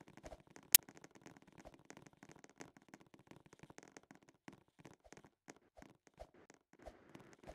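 A basketball bounces on a court floor in short thumps.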